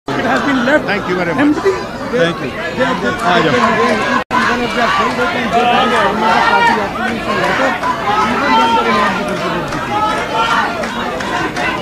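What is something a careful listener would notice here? A crowd of men and women talk over each other close by.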